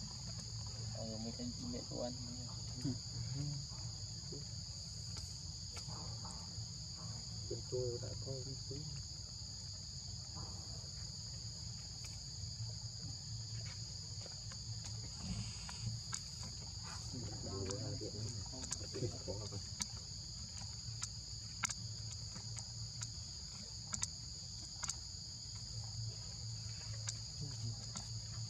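A baby monkey suckles softly at its mother.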